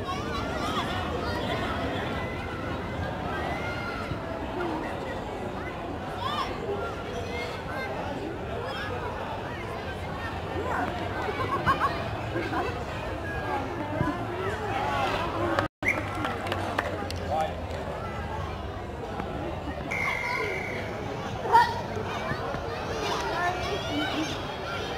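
A crowd of spectators chatters and calls out nearby, outdoors.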